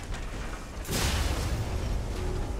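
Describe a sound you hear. A fiery explosion bursts with a loud crackle.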